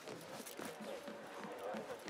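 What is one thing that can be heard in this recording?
Footsteps thud quickly across wooden boards.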